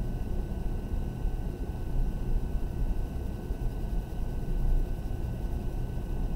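A pencil scratches and rubs softly on paper.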